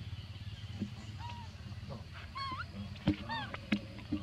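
A baby macaque gives high-pitched squeaks.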